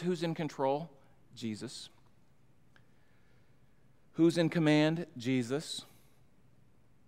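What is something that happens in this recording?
A middle-aged man speaks slowly and earnestly into a microphone, his voice echoing slightly in a large room.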